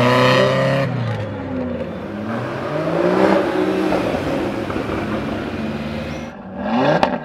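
A sports car engine roars and accelerates past.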